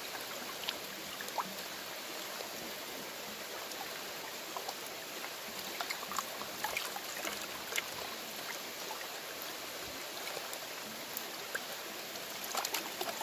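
Water sloshes in a plastic pan as it is swirled.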